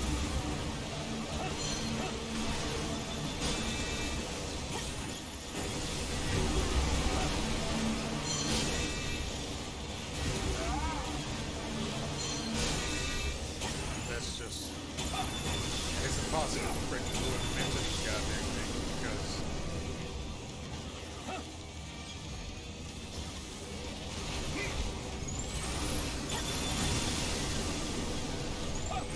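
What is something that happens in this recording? A robot's jet thrusters roar steadily.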